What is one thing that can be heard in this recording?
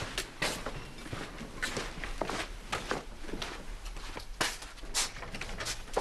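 Footsteps walk away across a room.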